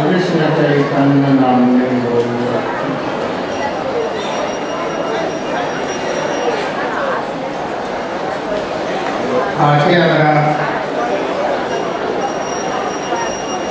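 An elderly man chants and speaks slowly into a microphone.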